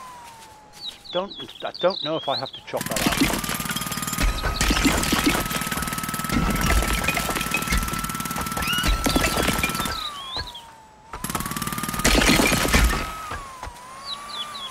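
Wooden boards clatter and crash as they fall.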